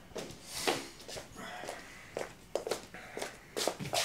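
Bare feet step on a hard floor.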